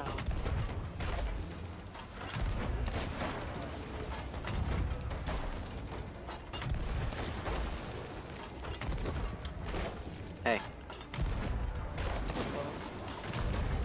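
A cannon fires with deep booms.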